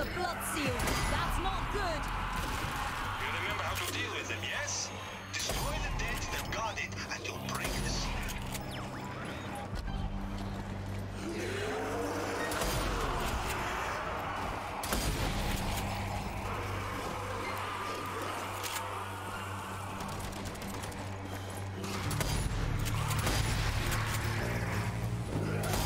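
Gunshots boom.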